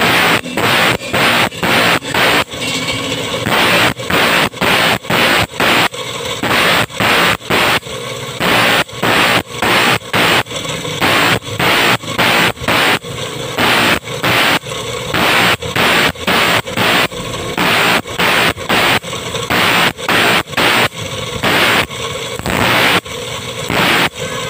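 A file rasps against the teeth of a saw in quick, even strokes.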